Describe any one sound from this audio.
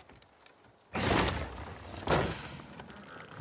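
Wooden double doors creak open.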